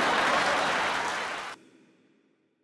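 A crowd of women applauds in a large room.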